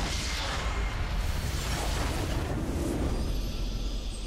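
Game spell effects burst and crackle.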